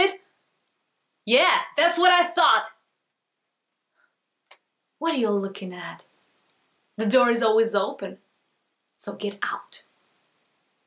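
A young woman speaks calmly and close by, in short phrases with pauses.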